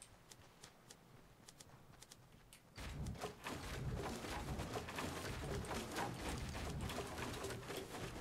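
Wooden building pieces clack quickly into place, one after another.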